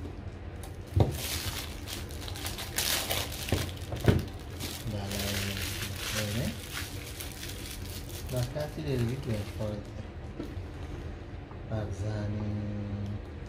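A cardboard box taps and slides on a wooden table.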